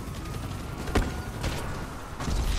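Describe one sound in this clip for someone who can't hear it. A gun fires a couple of sharp shots.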